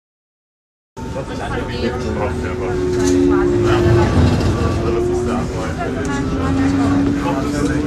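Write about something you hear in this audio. A tram rumbles steadily along its tracks.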